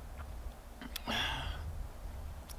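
A man exhales sharply after drinking.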